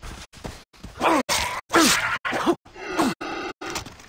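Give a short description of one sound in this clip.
A knife stabs into an animal with a wet thud.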